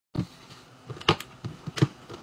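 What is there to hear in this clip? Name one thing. A plastic container lid snaps shut with sharp clicks.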